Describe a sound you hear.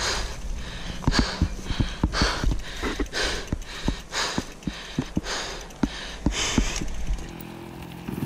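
A bicycle rattles and bumps over rough, grassy ground.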